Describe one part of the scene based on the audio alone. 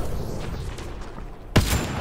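Energy weapons fire in sharp bursts.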